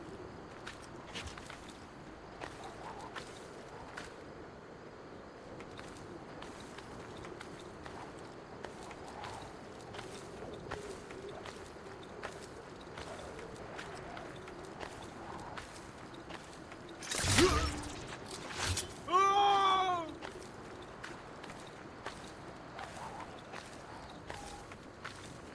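Hands grip and scrape on stone as someone climbs.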